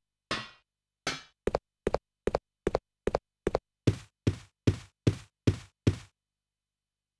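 Footsteps tap at a steady pace on a hard floor.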